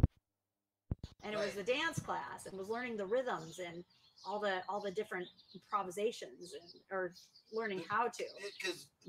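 A young woman talks calmly into a nearby microphone.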